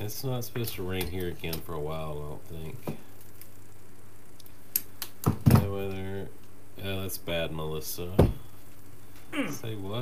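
A tool clicks and knocks on a table.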